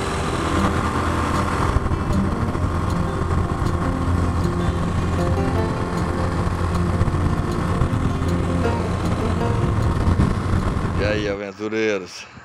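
A motorcycle engine drones steadily while riding.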